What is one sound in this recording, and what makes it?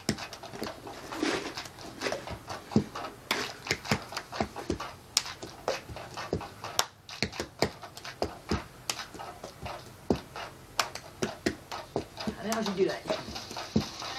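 A young girl sings softly nearby.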